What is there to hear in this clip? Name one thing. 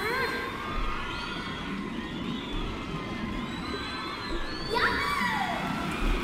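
Cheerful music plays with bubbly, whistling sweeps.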